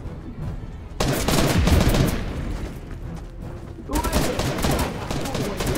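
A pickaxe strikes a wall with sharp thuds.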